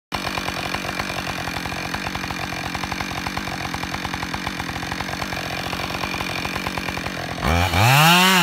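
A chainsaw engine runs with a rapid, steady chugging.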